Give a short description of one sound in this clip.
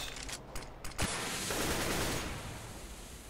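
A smoke grenade bursts and hisses.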